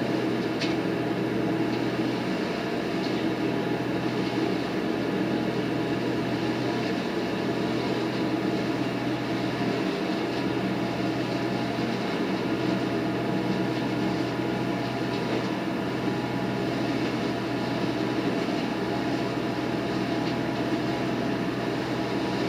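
A large leaf vacuum machine roars steadily with a loud engine drone.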